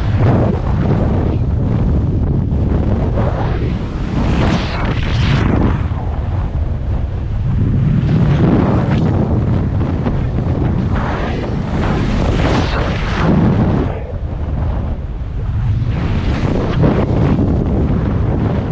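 Strong wind roars and buffets loudly, rising and falling in gusts.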